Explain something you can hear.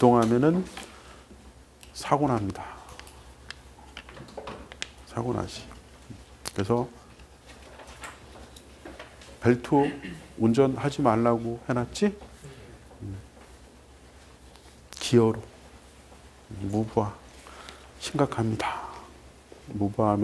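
A middle-aged man lectures through a clip-on microphone, speaking in short bursts with long pauses.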